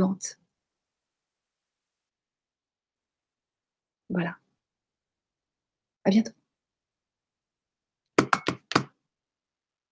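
A middle-aged woman speaks calmly in short bursts over an online call.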